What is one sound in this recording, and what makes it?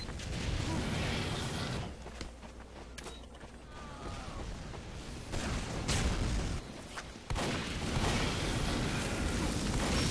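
A rocket explodes with a loud blast.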